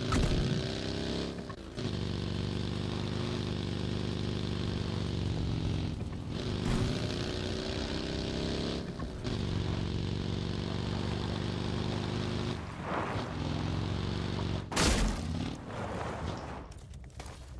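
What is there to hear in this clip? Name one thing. An off-road buggy engine revs and drops as the buggy drives over rough ground.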